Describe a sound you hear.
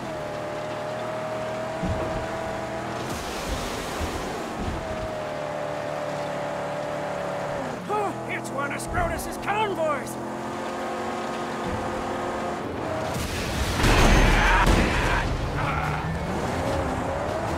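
A car engine roars steadily as it drives fast.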